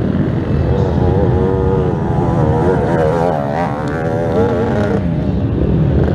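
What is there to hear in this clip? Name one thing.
A second quad engine revs loudly as it passes close by.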